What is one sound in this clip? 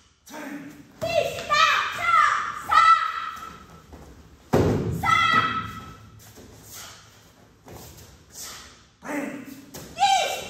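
Young girls shout short, sharp cries, close by.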